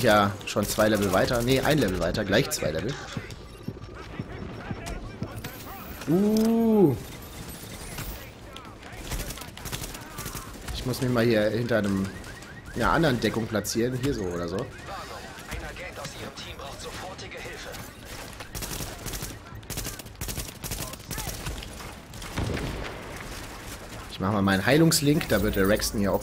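Gunfire rattles in bursts from a video game.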